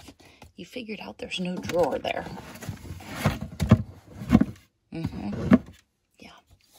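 A plastic bin is shifted and scraped over carpet.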